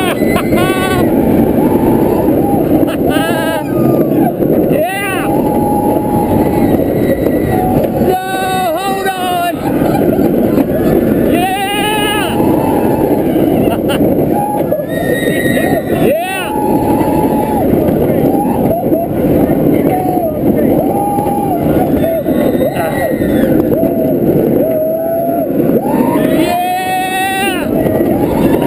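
Roller coaster wheels rumble and roar along a steel track.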